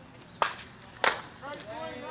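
A softball bat cracks against a ball.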